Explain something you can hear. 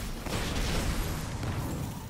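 Energy shots crackle and whoosh as weapons fire.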